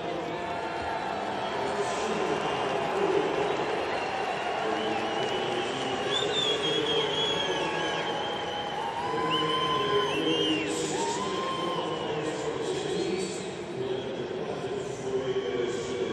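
A crowd murmurs and cheers in a large open stadium.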